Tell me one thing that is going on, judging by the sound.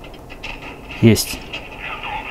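A cannon shot booms from a small phone speaker.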